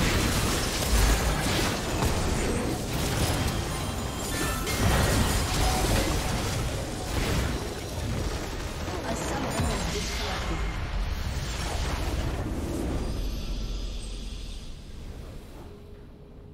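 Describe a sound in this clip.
Spells burst and crackle in a busy game battle, with many impacts.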